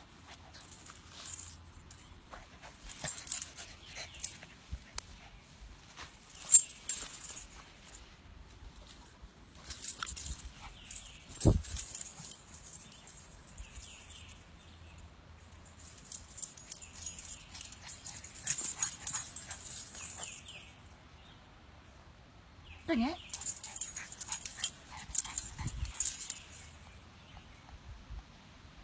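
A dog rolls and rustles on grass.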